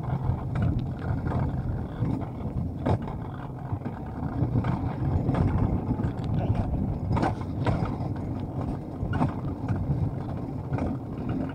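A coaster sled clatters and knocks over track joints.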